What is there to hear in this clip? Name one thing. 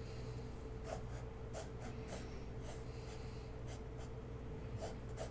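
A pencil scratches across paper in short strokes.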